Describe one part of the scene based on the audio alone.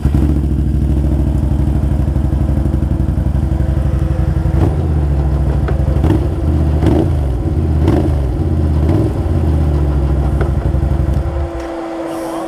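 A quad bike engine idles with a loud, steady rumble close by.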